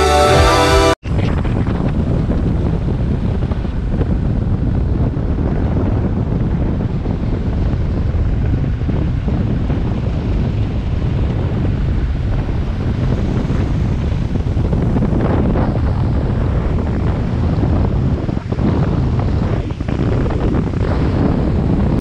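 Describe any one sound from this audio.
A boat's motor drones steadily.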